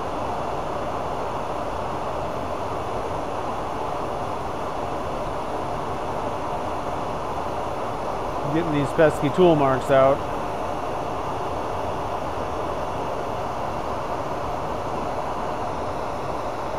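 Sandpaper rubs against a spinning metal rod with a soft, steady hiss.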